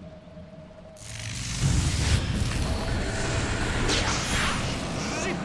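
Magical spell effects whoosh and crackle in a noisy fight.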